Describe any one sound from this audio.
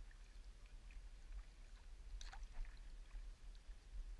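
A paddle dips and splashes in calm water.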